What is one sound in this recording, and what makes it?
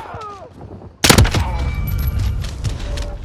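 A gun fires a loud, quick burst of shots.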